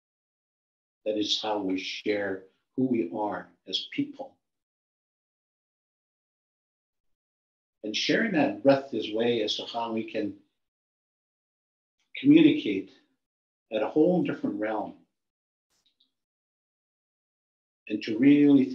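An elderly man speaks calmly and with pauses over an online call.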